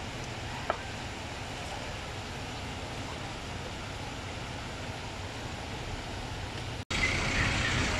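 A stream of water flows and splashes over rocks.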